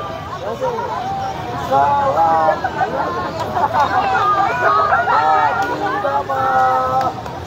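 A crowd of men and women sings loudly together outdoors.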